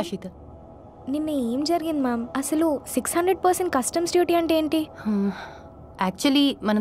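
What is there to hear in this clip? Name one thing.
Another woman answers calmly, close by.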